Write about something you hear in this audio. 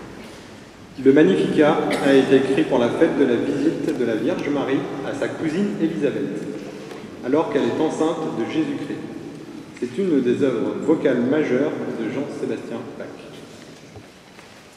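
A man speaks calmly into a microphone, heard through a loudspeaker in a reverberant hall.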